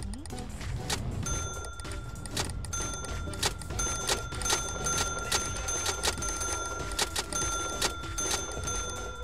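A checkout scanner beeps again and again.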